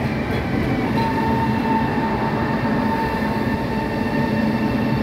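A train's wheels squeal with a steady high whine.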